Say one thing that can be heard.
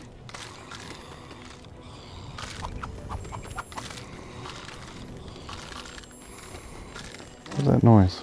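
Footsteps patter on wooden boards.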